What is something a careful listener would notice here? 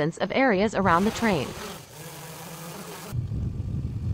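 A small drone buzzes as it flies close by.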